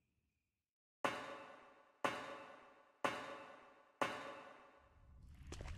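Metal ladder rungs clang under slow, even steps, each ringing out.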